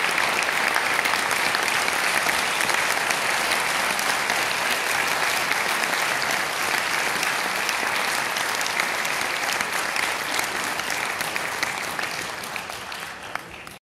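An audience applauds loudly in a large echoing hall, then the clapping slowly fades.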